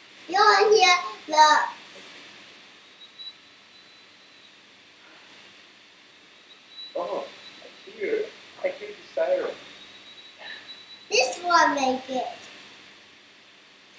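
A young boy talks and laughs over an online call.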